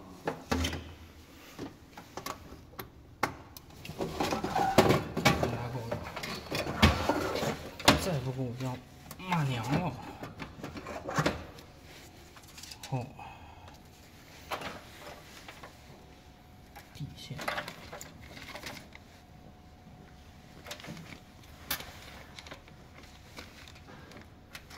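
Cables rustle and plastic connectors click as they are handled.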